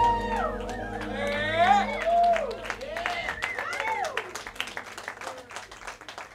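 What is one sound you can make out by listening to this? A keyboard plays gliding, bending notes.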